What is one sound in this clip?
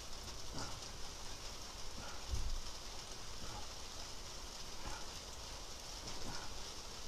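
Bedding rustles softly as someone shifts while lying down.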